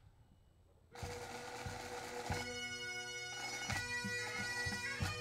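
Bagpipes start up and play loudly outdoors.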